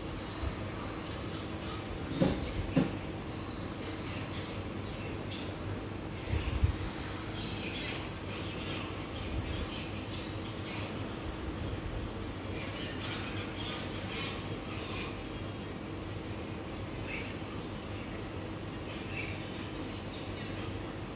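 A blade scrapes dry skin with soft, rasping strokes.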